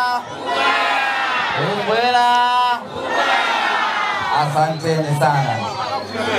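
A crowd cheers and shouts in reply.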